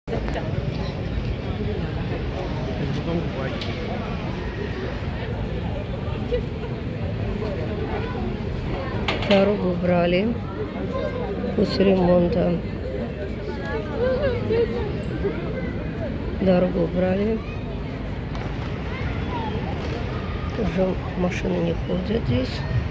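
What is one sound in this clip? Pedestrians' voices murmur outdoors in a busy street.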